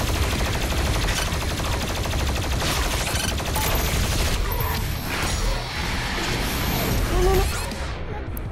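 Explosions boom close by.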